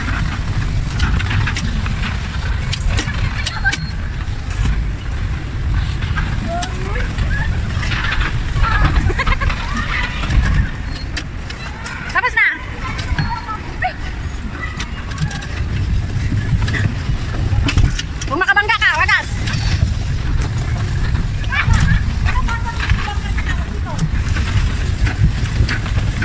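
Young people talk and shout with animation nearby.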